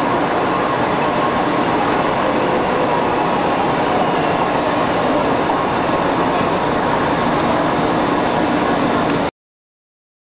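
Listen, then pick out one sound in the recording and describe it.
A subway train rushes past with a loud, steady rumble.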